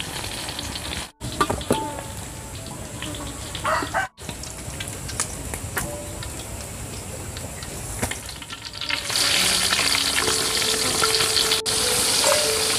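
Hot oil sizzles and crackles in a pan, growing louder and busier.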